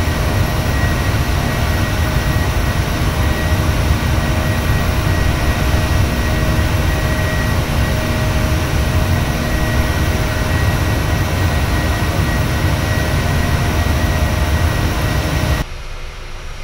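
A jet airliner roars steadily in flight.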